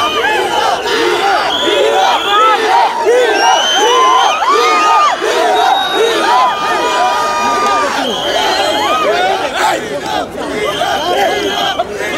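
A large crowd of young men cheers and shouts excitedly all around, close by.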